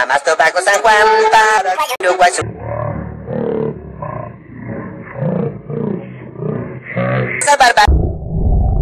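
A young man's cartoon voice sings rapidly and with animation.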